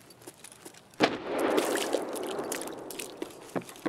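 Water splashes loudly as someone wades through it.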